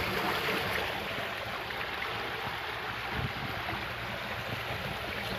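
Water flows along a shallow channel with a soft trickle.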